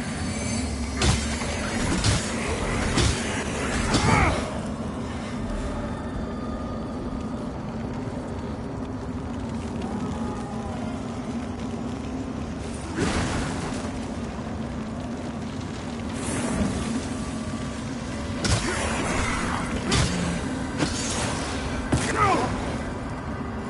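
Heavy weapon blows land with loud thuds and crashes.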